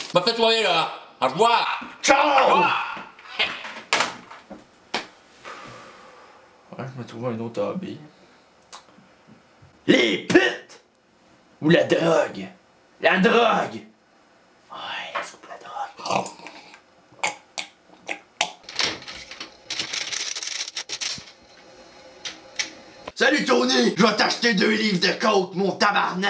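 A young man talks into a phone, close by.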